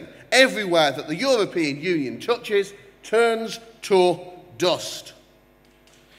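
A man speaks forcefully into a microphone in a large echoing hall.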